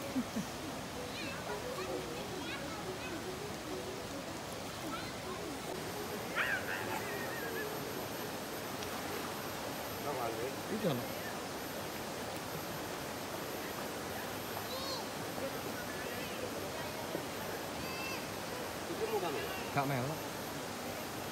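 Children shout and laugh in the distance outdoors.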